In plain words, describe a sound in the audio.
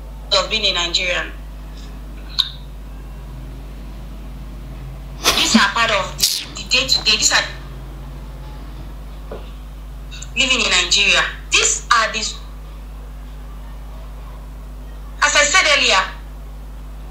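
A young woman speaks with animation into a close microphone, in short bursts with pauses.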